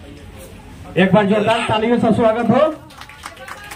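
A man speaks loudly and animatedly close by.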